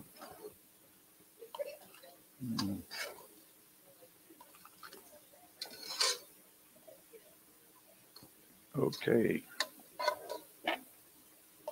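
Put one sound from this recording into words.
A spoon clinks against a pot.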